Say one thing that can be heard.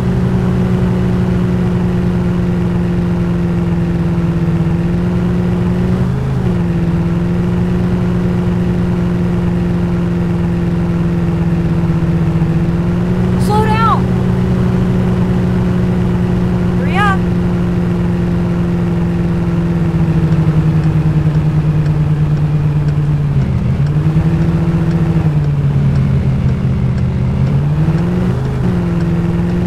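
A car engine hums steadily, its pitch shifting with gear changes.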